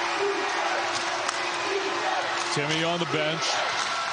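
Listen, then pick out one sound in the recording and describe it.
A basketball bounces on a hardwood floor.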